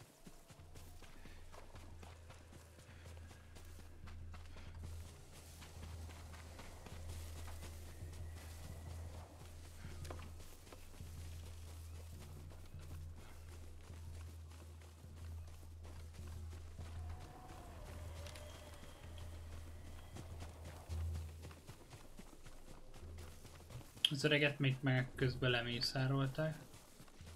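Footsteps rustle through grass and leaves.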